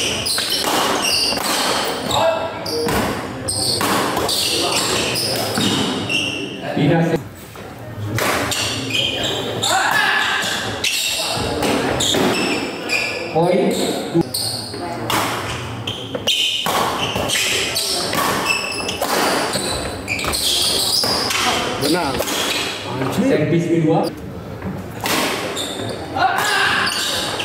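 Shoes squeak and thud on a wooden court floor.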